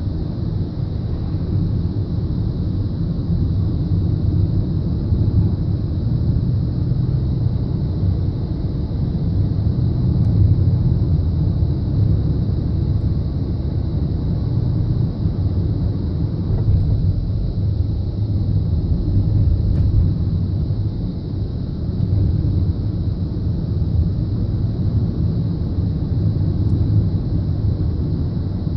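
A car engine hums steadily inside the car as it drives.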